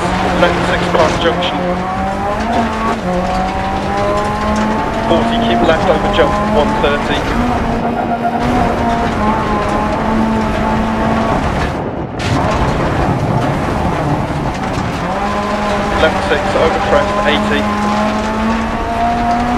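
Gravel crackles and rattles under car tyres.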